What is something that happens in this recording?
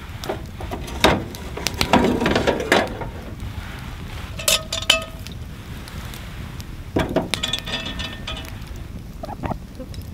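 A spoon scrapes and clinks against a metal pot.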